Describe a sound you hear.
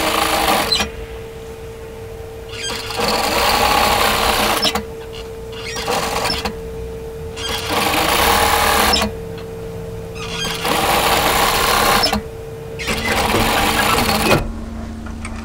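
A sewing machine stitches in short, fast bursts with pauses between.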